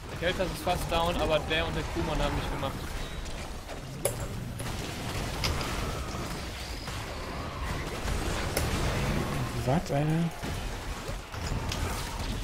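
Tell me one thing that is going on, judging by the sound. Magic blasts, zaps and clashing weapons crackle in a busy fantasy battle.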